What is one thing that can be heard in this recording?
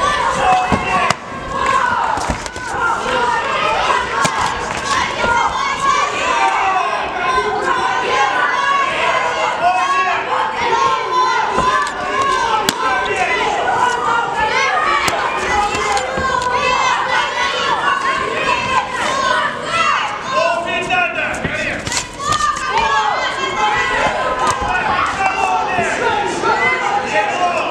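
Spectators and coaches shout and cheer, echoing in a large hall.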